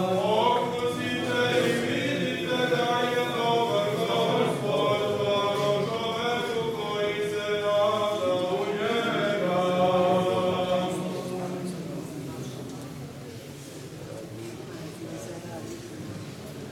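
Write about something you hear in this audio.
A crowd murmurs and shuffles about.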